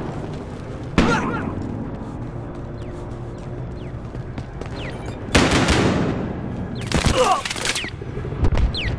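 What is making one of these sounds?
Loud gunshots crack and echo.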